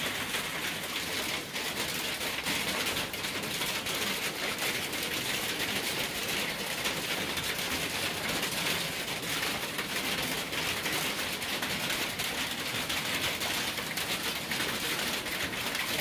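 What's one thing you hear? Hail patters and rattles steadily on the ground and a wooden fence outdoors.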